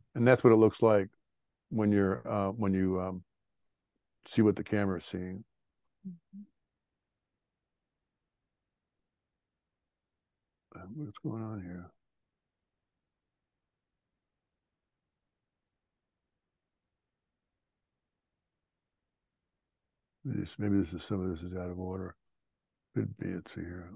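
An older man talks calmly over an online call, in short bursts with pauses.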